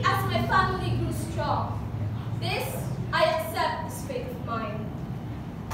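A young girl recites dramatically into a nearby microphone.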